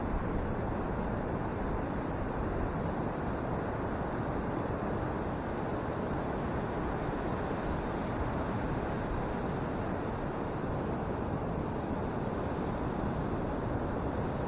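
Ocean waves crash and roll onto a beach with a steady rumble.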